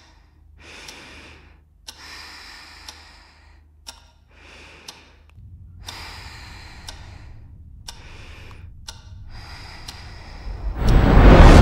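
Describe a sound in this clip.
A woman breathes heavily in her sleep.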